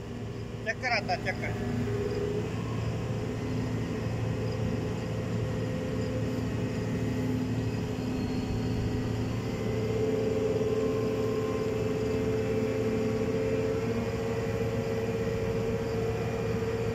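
A large truck engine idles nearby with a steady low hum.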